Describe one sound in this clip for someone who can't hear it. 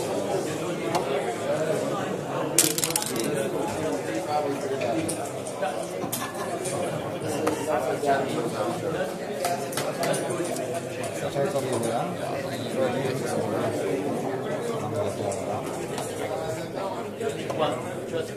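A game clock button is pressed with a click.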